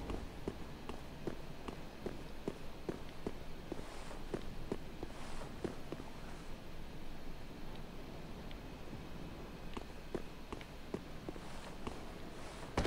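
Footsteps clack steadily on stone.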